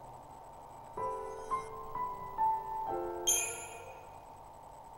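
Short electronic menu chimes ring out in a quick rising run.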